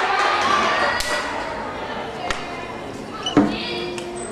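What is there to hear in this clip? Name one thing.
Feet thump on a wooden balance beam.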